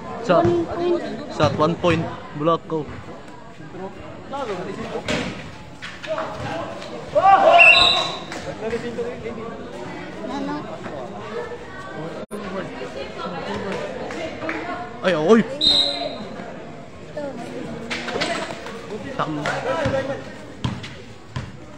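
A crowd of spectators chatters and shouts nearby.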